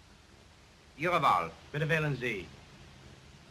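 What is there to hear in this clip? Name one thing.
A man speaks a few short words nearby.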